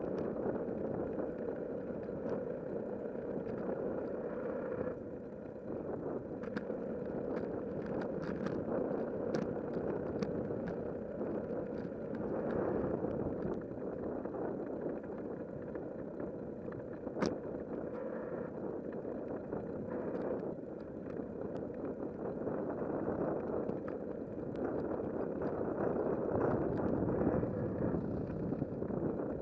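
Tyres roll and hum on asphalt.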